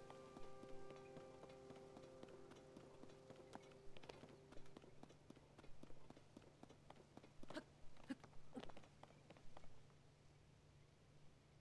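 Footsteps patter quickly over rocky ground.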